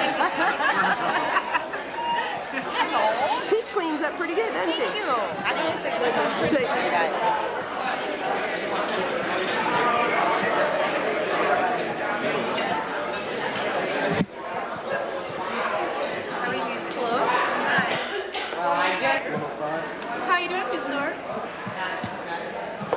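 A crowd chatters in a large echoing room.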